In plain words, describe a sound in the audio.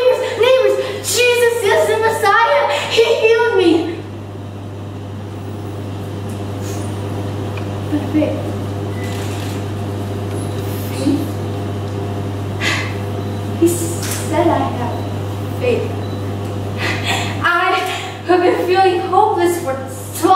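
A young woman speaks with strong emotion close by.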